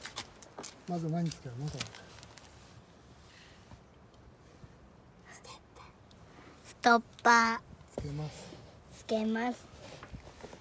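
A young girl speaks in an excited voice close by.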